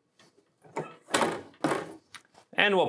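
A heavy press lid clamps shut with a metallic clunk.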